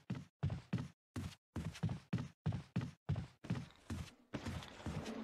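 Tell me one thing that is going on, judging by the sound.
Footsteps thud on wooden stairs in a steady rhythm.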